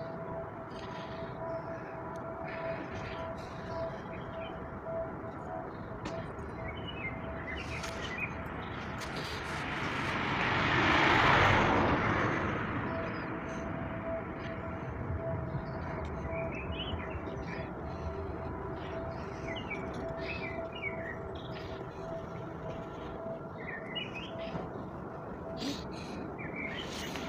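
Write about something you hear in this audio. Construction machinery hums steadily in the distance.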